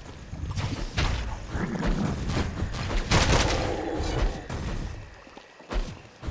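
Deep booming hits thud now and then.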